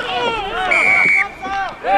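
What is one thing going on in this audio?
A referee's whistle blows a short sharp blast.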